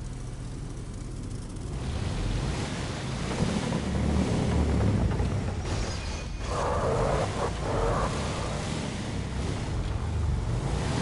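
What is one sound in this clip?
A buggy engine revs and rumbles steadily.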